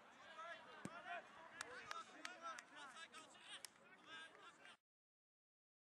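A small crowd of men talks and cheers outdoors.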